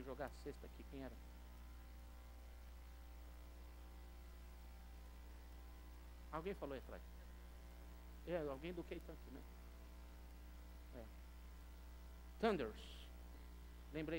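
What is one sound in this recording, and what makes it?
An older man speaks through a microphone in short bursts with long pauses.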